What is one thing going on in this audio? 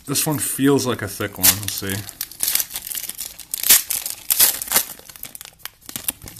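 A foil wrapper crinkles and tears as hands open a pack.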